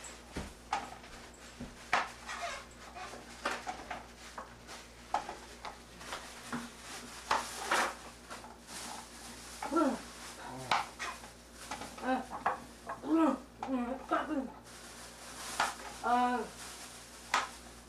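A plastic bag rustles and crinkles.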